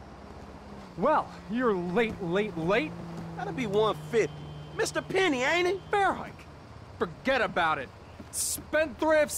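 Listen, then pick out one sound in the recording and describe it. A man speaks loudly and with agitation, close by.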